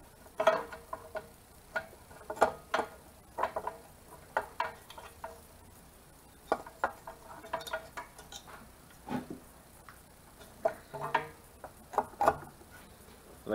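Sheet-metal engine tin clinks and knocks against the engine.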